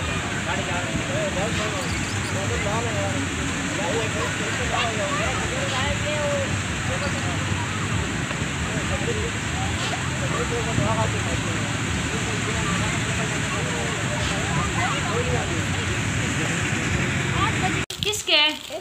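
A carousel rumbles as it turns.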